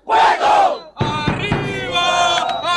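A young man sings loudly with strain.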